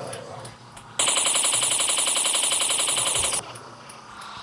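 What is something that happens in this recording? Toy laser blasters fire in a fast, buzzing stream.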